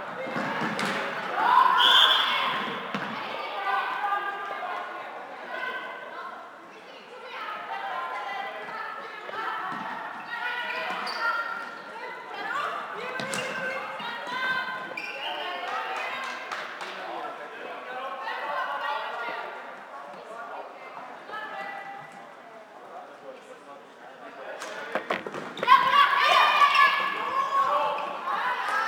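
Young women shout to one another in a large echoing hall.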